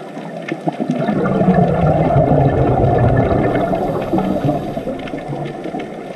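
Scuba divers' exhaled bubbles gurgle and rumble underwater.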